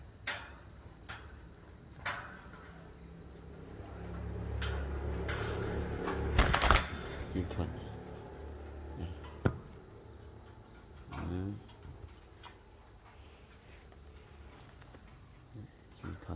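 Wire cage bars clink and rattle.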